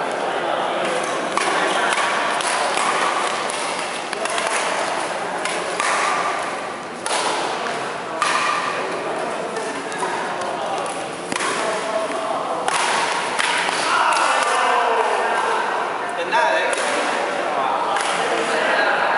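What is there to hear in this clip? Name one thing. Badminton rackets hit a shuttlecock back and forth in a large echoing hall.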